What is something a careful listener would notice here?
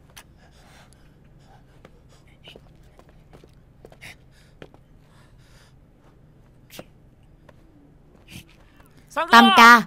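A middle-aged man whispers tensely.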